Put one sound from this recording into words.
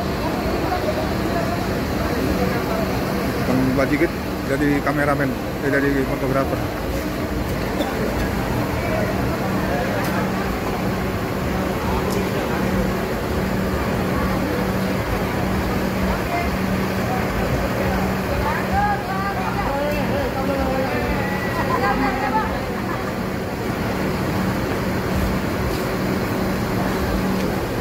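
A crowd of people chatter in the background outdoors.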